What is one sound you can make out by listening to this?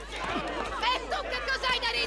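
A woman shouts angrily.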